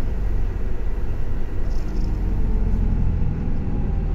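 Another bus drives past close by outside.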